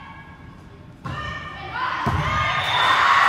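A volleyball is struck with dull thumps in a large echoing hall.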